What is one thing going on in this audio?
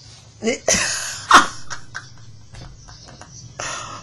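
A woman laughs loudly into a microphone.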